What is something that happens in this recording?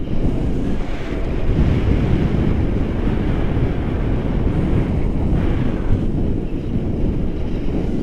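A young woman speaks close by, half drowned by the wind.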